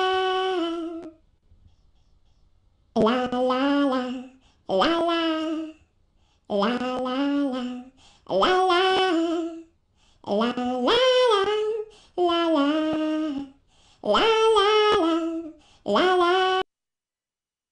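A young woman sings a slow tune in long, clear phrases with short pauses between them.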